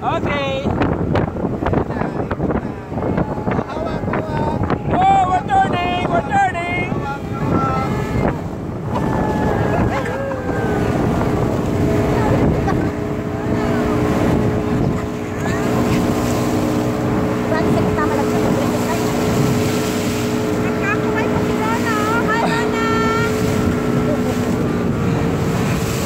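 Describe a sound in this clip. Water rushes and splashes.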